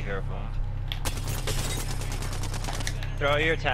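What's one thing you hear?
Rapid gunshots fire in a short burst.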